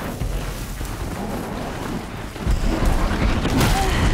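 A large machine creature stomps and clanks nearby.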